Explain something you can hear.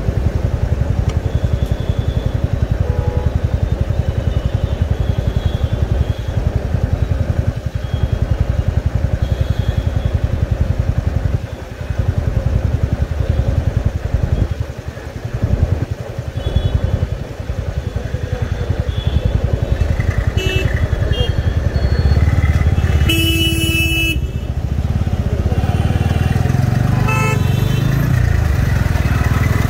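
Traffic rumbles nearby.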